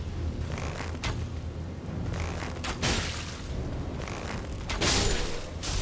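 Metal weapons clash with sharp impacts.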